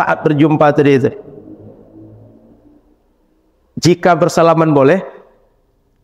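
A man speaks calmly through a headset microphone in a room with a slight echo.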